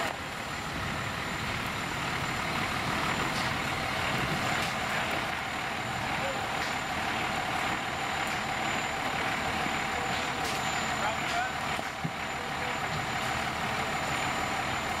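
A fire engine's motor idles with a steady rumble nearby.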